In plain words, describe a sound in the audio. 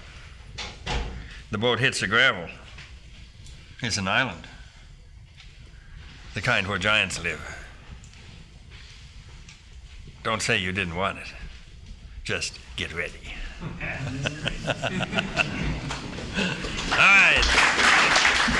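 An elderly man speaks slowly and calmly, with pauses.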